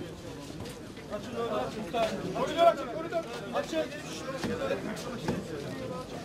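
Several men chant loudly together.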